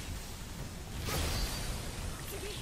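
A blade slashes with a loud burst of rushing air.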